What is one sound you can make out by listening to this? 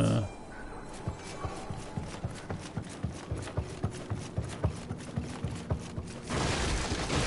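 Footsteps tread quickly across wooden floorboards.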